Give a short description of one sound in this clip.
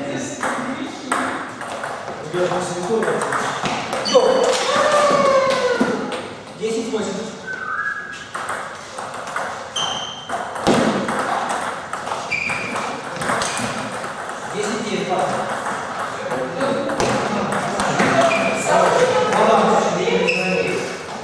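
A table tennis ball clicks back and forth on paddles and a table in a large echoing hall.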